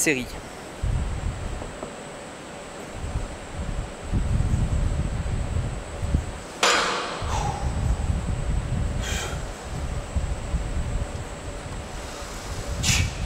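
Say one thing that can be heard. A leg press machine's weights rumble and clank as they move.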